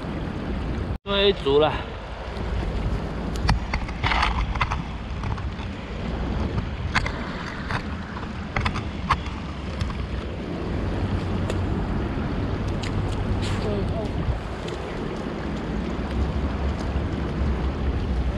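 Small waves lap against a concrete block at the water's edge.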